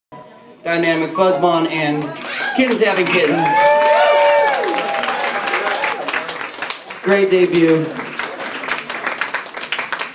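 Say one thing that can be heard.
A young man sings loudly into a microphone.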